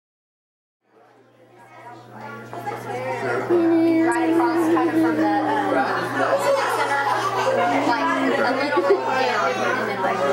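Several men and women talk and laugh over one another close by, indoors.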